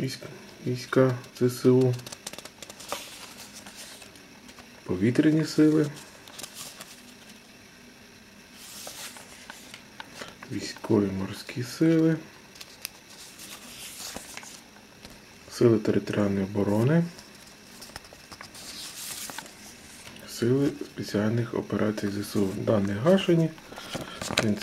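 Paper rustles as envelopes are handled and shuffled close by.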